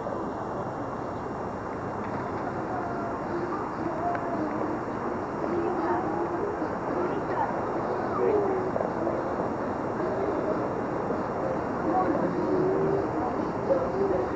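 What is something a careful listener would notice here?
A woman talks at a distance outdoors.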